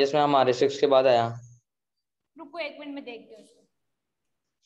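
A young woman speaks calmly and clearly nearby, as if explaining.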